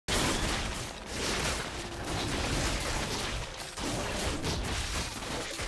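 Video game combat effects crackle and clash as spells and blows land.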